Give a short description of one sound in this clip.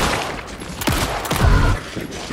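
A handgun fires sharp shots at close range.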